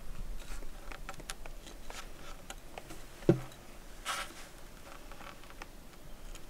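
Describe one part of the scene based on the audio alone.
Metal divider points tap and scrape against wood.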